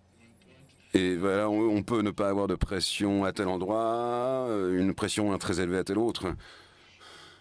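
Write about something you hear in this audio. A man speaks through a microphone.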